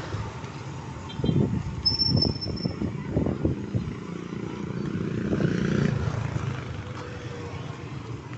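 A tricycle motor putters along the street nearby.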